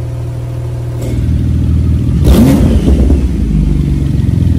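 A sports car engine revs up sharply and drops back, echoing in a large hard-walled room.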